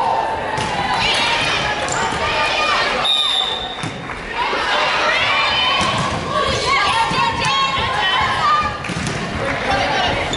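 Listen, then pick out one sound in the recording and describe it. A volleyball is struck with dull smacks.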